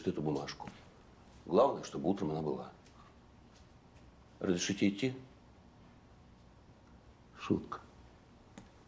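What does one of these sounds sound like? A second middle-aged man answers close by.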